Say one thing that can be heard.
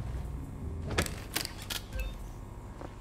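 An electronic lock clicks and beeps.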